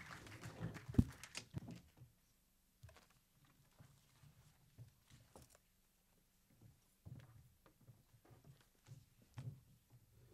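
Paper rustles close to a microphone.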